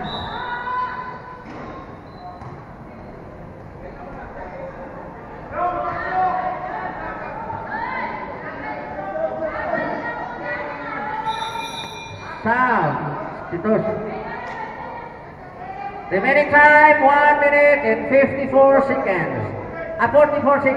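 A crowd of spectators talks and shouts.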